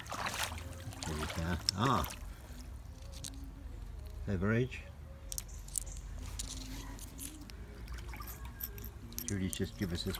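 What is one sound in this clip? Shallow water trickles over stones.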